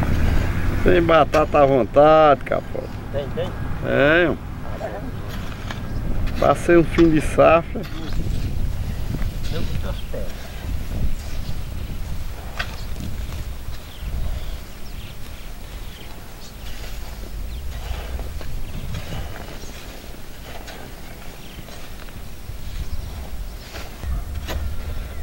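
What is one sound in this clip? Hoes scrape and chop into dry soil.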